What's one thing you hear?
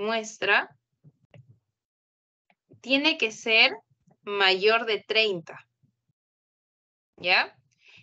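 A young woman speaks calmly over an online call, in short phrases with pauses.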